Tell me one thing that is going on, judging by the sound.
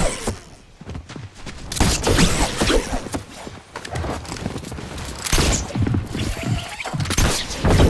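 A pickaxe chops into wood.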